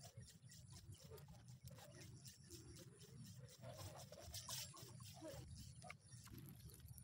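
A fishing reel clicks rapidly as line is wound in.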